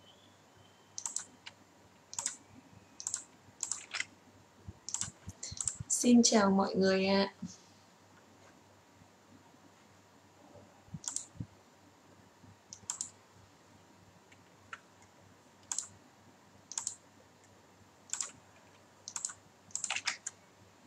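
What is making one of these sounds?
A young woman speaks calmly and closely into a microphone, with pauses.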